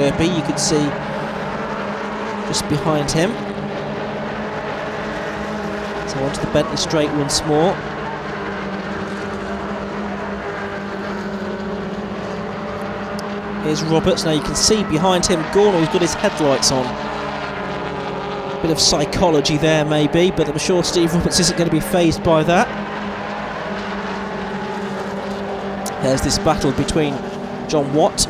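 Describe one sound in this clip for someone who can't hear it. Racing car engines roar past, revving up and down through gear changes.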